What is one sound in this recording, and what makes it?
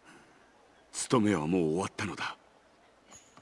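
A man answers calmly in a low voice, close by.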